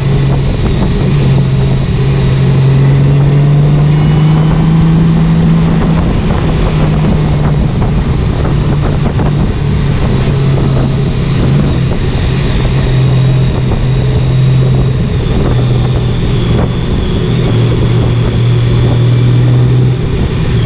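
A Honda Gold Wing flat-six motorcycle engine hums while cruising.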